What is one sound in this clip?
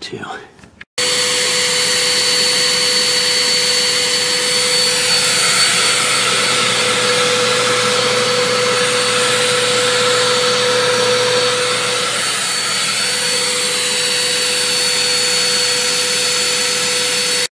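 A vacuum cleaner runs with a loud, steady roar and whine.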